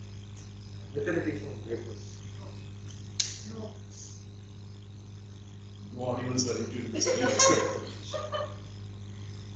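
A man speaks calmly in a room that echoes.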